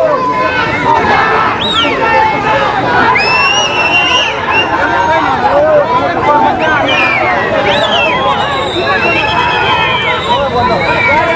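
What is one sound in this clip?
A large crowd of men shouts and chatters loudly outdoors.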